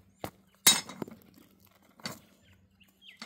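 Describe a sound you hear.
Stones clack together.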